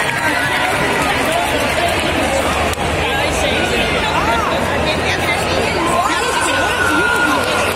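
A large crowd of young people chatters loudly in a big echoing hall.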